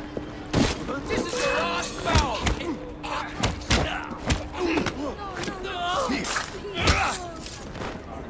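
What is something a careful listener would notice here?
Men grunt and cry out while fighting.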